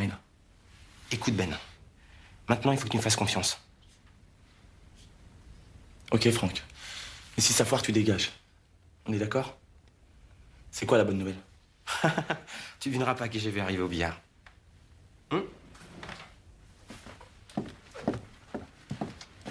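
Another man answers in a low voice.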